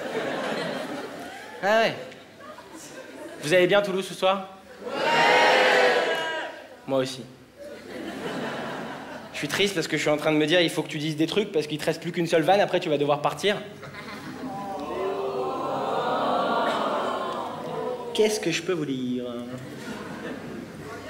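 A young man talks with animation through a microphone in a large hall.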